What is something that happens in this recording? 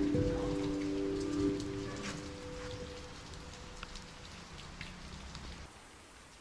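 Rain patters steadily on wet pavement.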